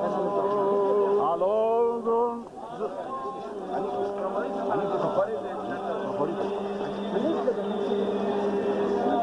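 Men's voices chant together in long held notes.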